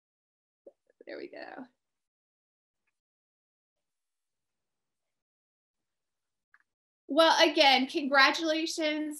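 A young woman talks cheerfully, heard over an online call.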